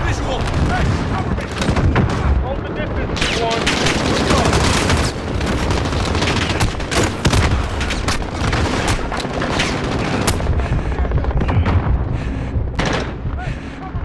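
Explosions boom with deep rumbles.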